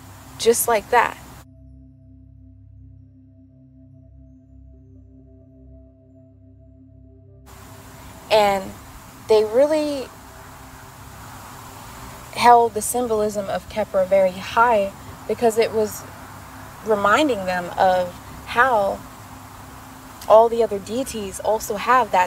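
A young woman speaks calmly and softly close to a microphone.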